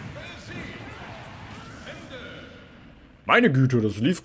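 Video game fighting sound effects and music play.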